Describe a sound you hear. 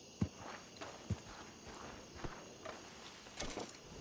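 Boots crunch on dry dirt.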